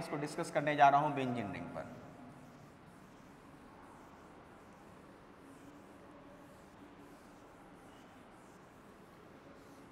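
A duster rubs softly across a board.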